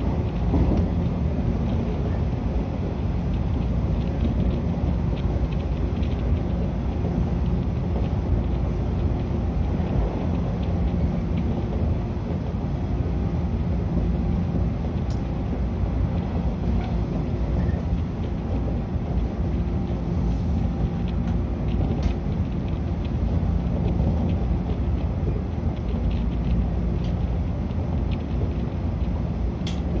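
A train's motor hums at a steady low pitch.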